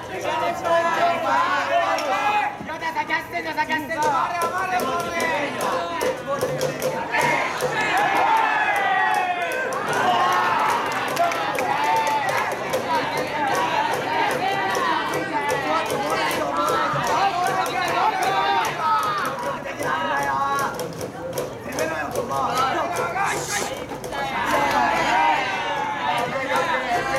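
Young male players chant and shout loudly outdoors.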